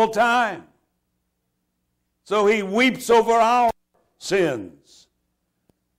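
A man speaks with animation through a microphone, in short bursts.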